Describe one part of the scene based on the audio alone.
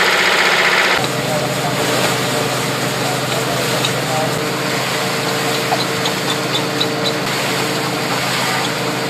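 A threshing machine rumbles and rattles steadily.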